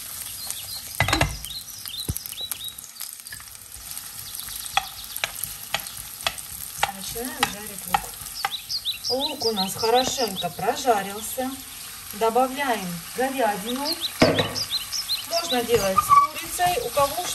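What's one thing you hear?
A spatula scrapes and taps against a frying pan.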